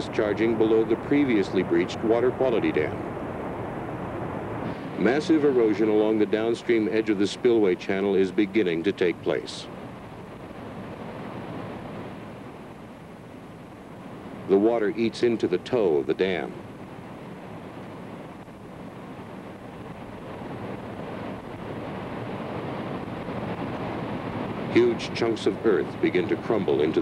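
Water roars and rushes down a steep slope.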